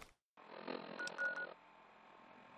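A small electronic device beeps and clicks.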